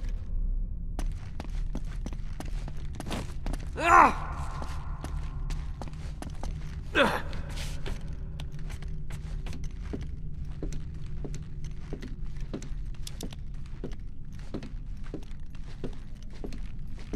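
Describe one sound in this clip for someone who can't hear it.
Hands knock and scrape on stone while climbing.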